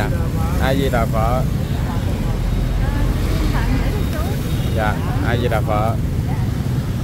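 An elderly woman speaks close by.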